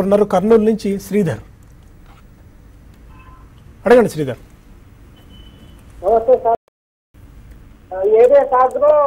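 A man speaks calmly and clearly into a microphone, in short bursts with pauses.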